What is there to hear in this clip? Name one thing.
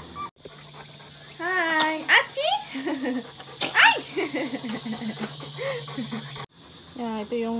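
A baby babbles and laughs.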